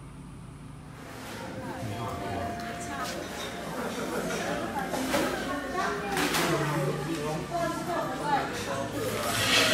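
Several women and men chatter nearby in a roomy, echoing hall.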